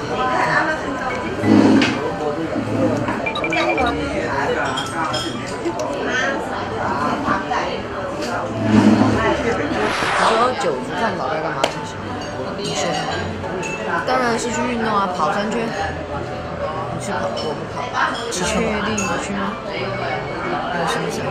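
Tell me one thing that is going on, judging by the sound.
A second boy answers casually close by.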